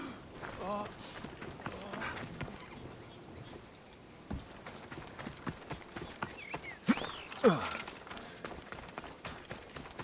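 Footsteps thud over wooden boards and grass.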